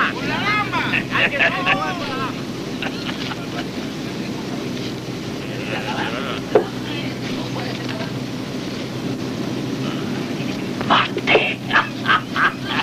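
Several men talk and exclaim in a group nearby.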